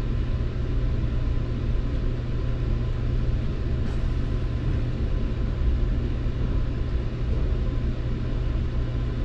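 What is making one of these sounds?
A train engine hums low and steady.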